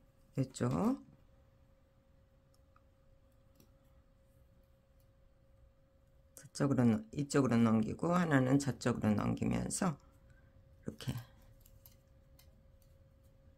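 Fingers rub and knot strands of yarn.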